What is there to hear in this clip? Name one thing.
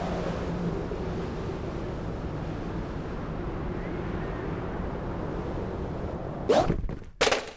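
Wind rushes past steadily during a fall.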